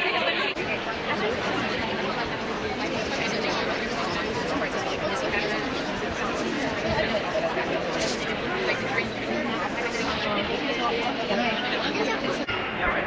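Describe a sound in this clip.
A crowd murmurs and chatters in a large busy hall.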